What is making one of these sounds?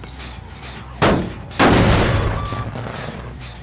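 A heavy machine bursts with two loud blasts that fade away.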